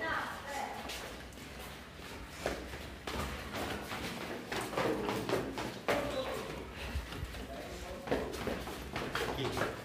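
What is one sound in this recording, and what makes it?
Footsteps tap down concrete stairs.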